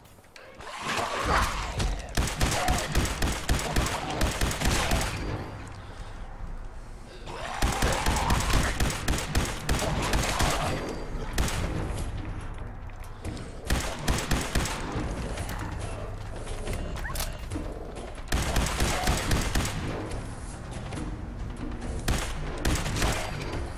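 A laser rifle fires rapid zapping bursts.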